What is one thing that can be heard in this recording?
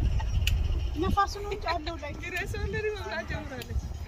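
Children and adults chatter nearby outdoors.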